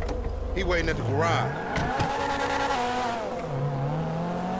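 A car engine starts and revs up.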